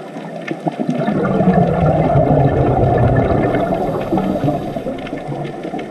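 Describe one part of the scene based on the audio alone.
Scuba divers breathe out, and bubbles gurgle and rumble underwater.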